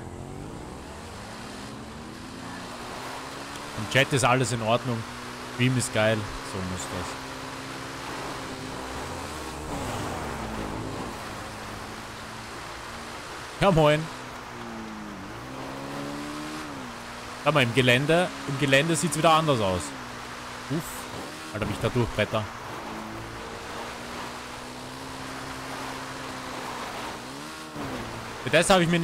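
A dirt bike engine hums and revs steadily.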